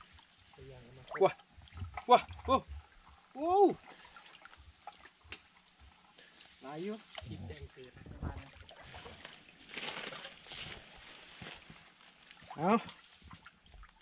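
Water splashes and drips as a fishing net is pulled from a shallow stream.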